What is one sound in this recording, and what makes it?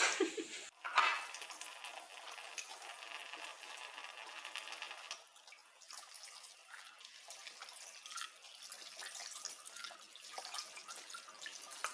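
Glass and plastic clink and rub as dishes are washed.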